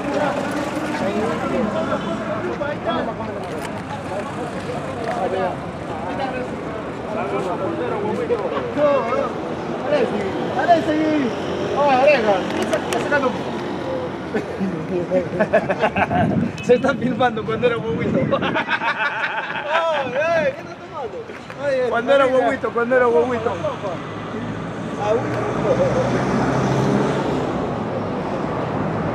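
Men talk with animation close by, outdoors.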